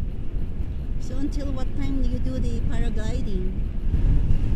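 A woman speaks close by, loud over the wind.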